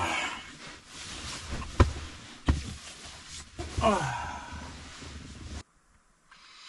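Bedding rustles and thumps as a man shifts around.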